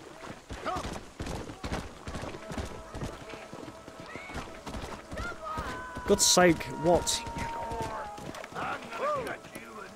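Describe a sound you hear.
A horse's hooves clop steadily on a dirt road.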